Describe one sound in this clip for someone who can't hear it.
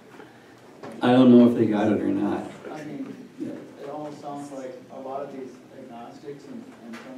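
A middle-aged man speaks calmly nearby.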